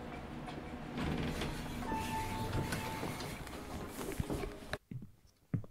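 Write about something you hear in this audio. Lift doors slide open.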